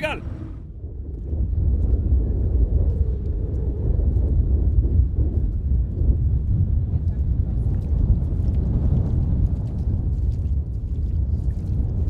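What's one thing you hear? Bare feet splash and slap through shallow water and wet sand.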